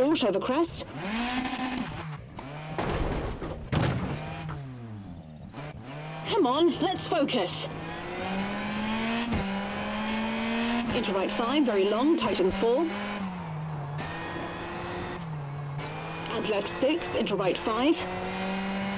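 A rally car engine roars and revs up and down through the gears.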